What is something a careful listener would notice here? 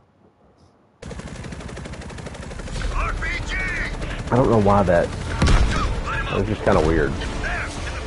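A helicopter's rotor thumps steadily up close.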